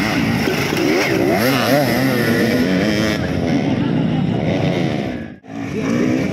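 A dirt bike engine revs loudly close by.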